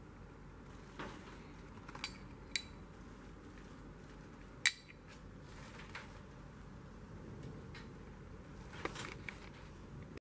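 Metal tools clink against each other.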